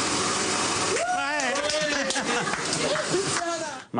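Several men cheer and shout excitedly.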